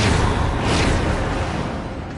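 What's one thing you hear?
A magical portal blast whooshes.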